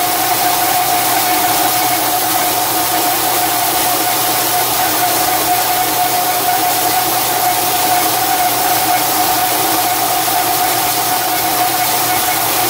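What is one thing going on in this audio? A metal lathe spins steadily with a high, whining hum.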